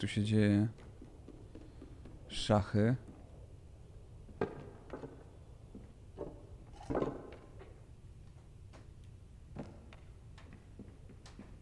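Soft footsteps patter on wooden floorboards.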